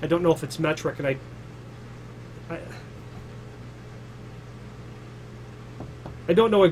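A man talks calmly and close to a clip-on microphone, with pauses.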